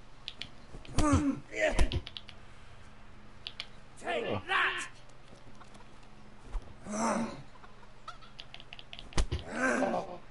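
Fists thump hard against a body.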